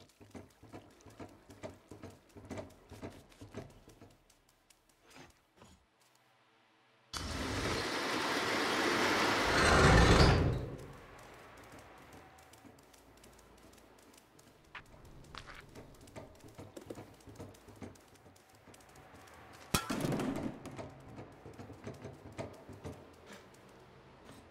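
A cat's paws patter softly on a hard floor.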